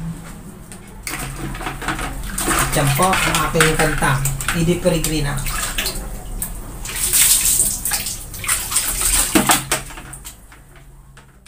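Water splashes as clothes are scrubbed in a tub.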